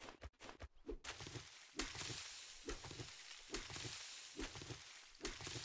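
Footsteps rustle through tall grass at a steady pace.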